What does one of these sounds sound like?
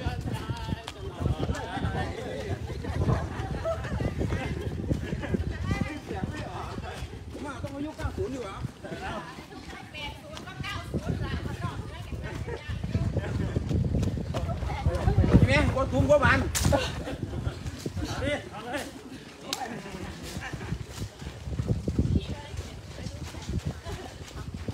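Young men and women chat and call out while jogging.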